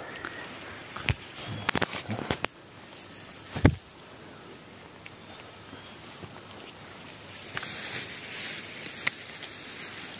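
Mushroom stems snap softly as they are picked.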